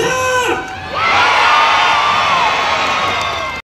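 A crowd cheers and screams nearby.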